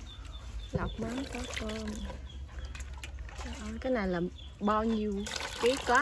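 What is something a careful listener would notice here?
Muddy water splashes as it is poured from one bowl into another.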